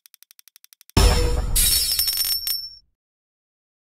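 Coins jingle and clatter in a burst.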